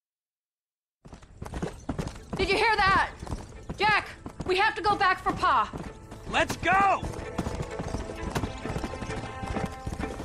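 A horse's hooves thud at a steady trot on a dirt track.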